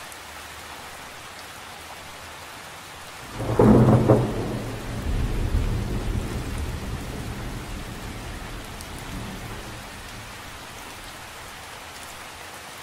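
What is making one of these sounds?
Raindrops patter softly on the surface of a lake.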